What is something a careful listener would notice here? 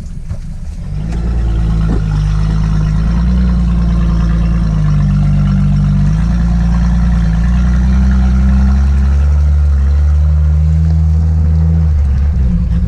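An engine revs harder as a vehicle drives through deep mud.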